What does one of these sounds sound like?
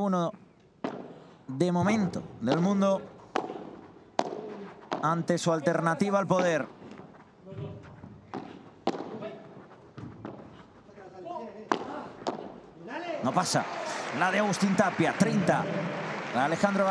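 Paddles strike a ball back and forth with sharp pops.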